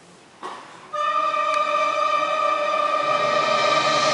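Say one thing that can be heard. An orchestra plays, swelling suddenly into loud, sustained brass and string chords.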